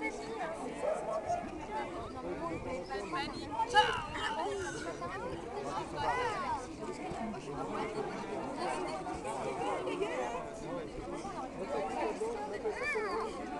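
Young women chat casually nearby outdoors.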